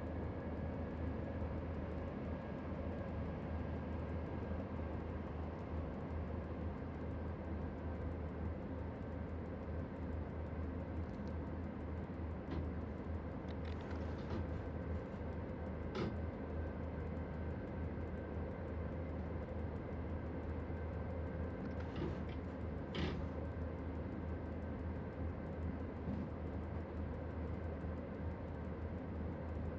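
Train wheels rumble and clack over the rails.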